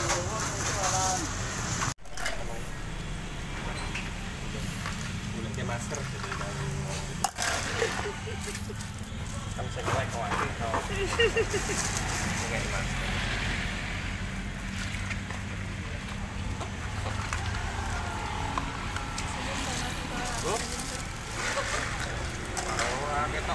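A plastic bag crinkles and rustles in someone's hands.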